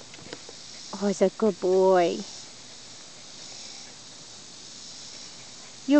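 A dog pants softly close by.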